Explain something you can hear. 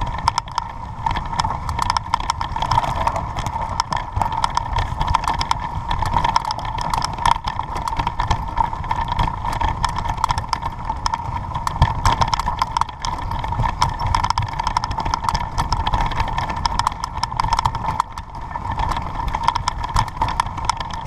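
Tyres roll and rattle over a sandy dirt track.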